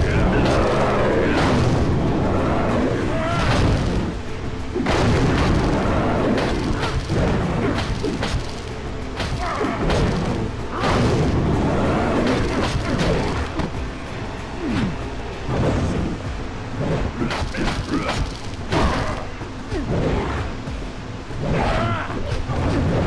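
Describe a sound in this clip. Punches and blows land with heavy thuds and smacks.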